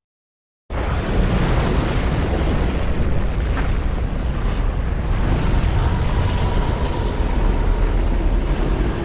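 A strong wind roars and howls steadily.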